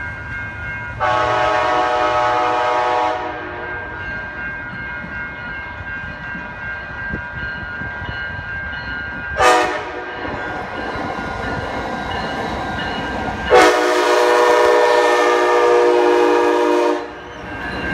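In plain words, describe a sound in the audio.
A train horn blows loud, long blasts nearby.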